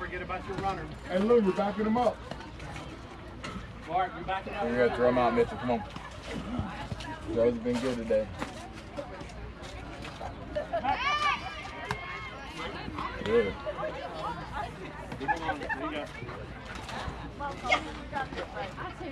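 Several people shout and cheer outdoors at a distance.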